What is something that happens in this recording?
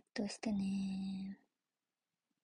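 A young woman speaks briefly and softly close to a microphone.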